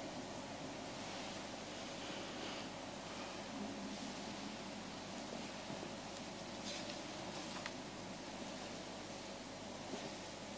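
An elderly man speaks softly into a microphone.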